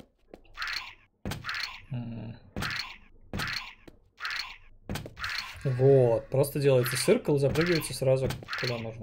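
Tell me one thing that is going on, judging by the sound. Quick footsteps and jump landings thump in a steady rhythm.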